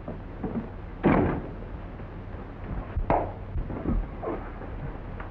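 Two men scuffle and grapple with heavy thumps.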